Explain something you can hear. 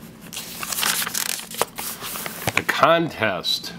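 Paper pages rustle and crinkle close by.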